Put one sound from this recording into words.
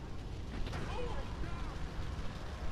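A car crashes into another car with a thud.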